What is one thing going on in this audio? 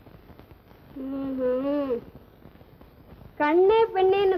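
A young woman sings in long, held notes, heard through an old, hissy recording.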